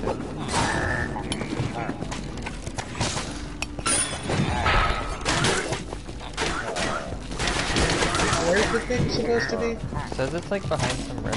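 Video game weapons strike and clash in a fast fight.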